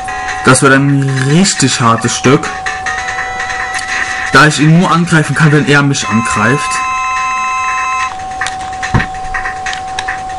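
Retro video game music plays with bleeping tones.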